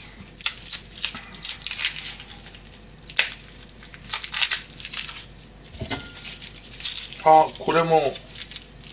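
Hands rub and squish raw meat with soft wet sounds.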